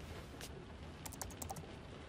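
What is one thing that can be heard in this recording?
Keys tap on a laptop keyboard.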